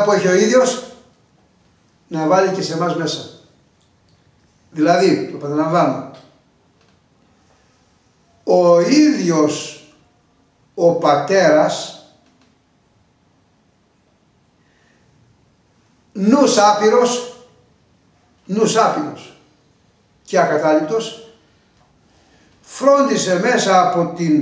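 An elderly man speaks with animation, in short phrases with pauses, close to a microphone.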